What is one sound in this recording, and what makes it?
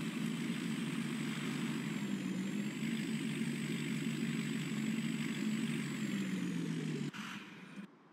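A truck engine rumbles steadily, rising and falling slightly as it drives.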